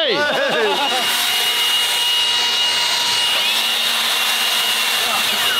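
A leaf blower roars steadily.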